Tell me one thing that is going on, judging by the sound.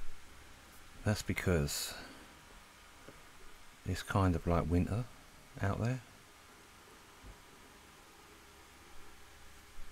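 A stylus taps and slides softly on a glass tablet.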